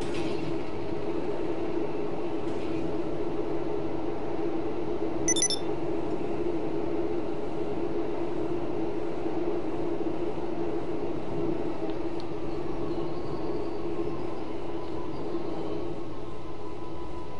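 A motorbike engine drones steadily.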